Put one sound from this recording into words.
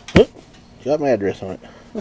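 A hand pats the side of a cardboard box.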